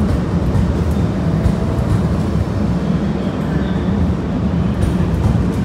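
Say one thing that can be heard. A train rumbles steadily past along the tracks.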